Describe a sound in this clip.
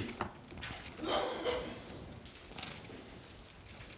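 Paper pages rustle as a man turns them.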